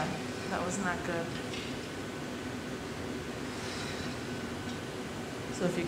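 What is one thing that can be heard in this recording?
A furnace roars steadily.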